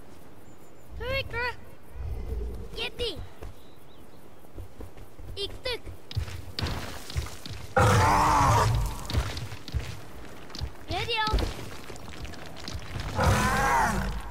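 A large beast lets out high, warbling cries now and then.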